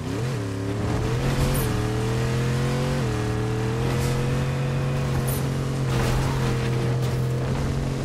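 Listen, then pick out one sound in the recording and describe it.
A car engine hums steadily, its pitch rising and dipping as it speeds up and shifts.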